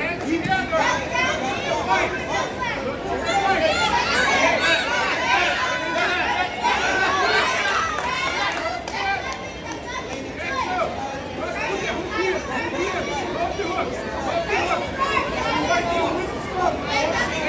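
A crowd of men and women shout and call out encouragement in a large echoing hall.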